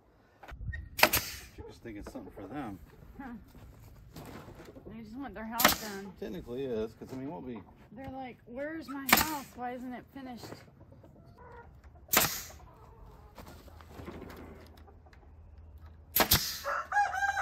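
A nail gun fires in short, sharp bangs.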